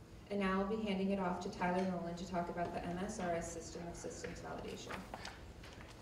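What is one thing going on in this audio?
A woman speaks into a microphone in a large room.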